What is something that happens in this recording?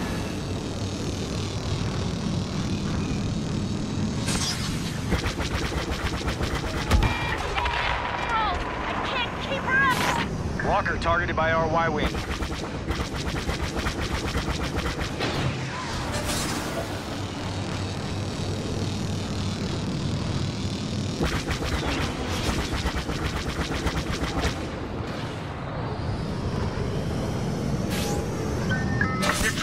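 A spacecraft engine roars steadily.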